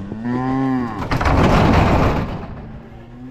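A metal gate rattles and clanks.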